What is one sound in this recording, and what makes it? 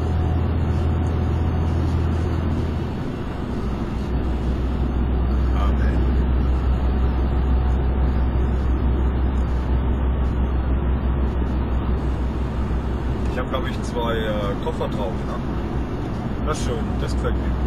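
A car engine hums steadily while driving at speed.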